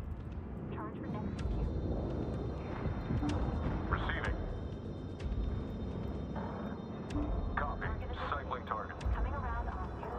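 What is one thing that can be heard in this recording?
Spaceships fire laser weapons in short bursts.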